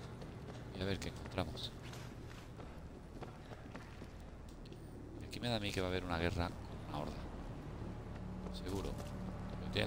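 Footsteps walk steadily on hard ground.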